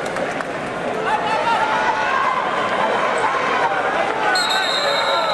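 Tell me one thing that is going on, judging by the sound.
Spectators shout encouragement loudly.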